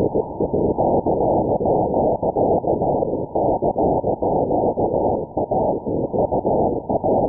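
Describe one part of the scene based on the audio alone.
Morse code tones pulse faintly through radio static.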